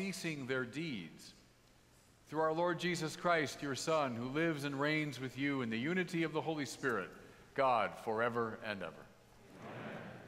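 A man chants in a steady, sung voice through a microphone in a large echoing hall.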